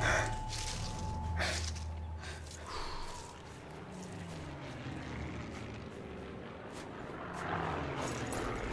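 Wind blows softly outdoors.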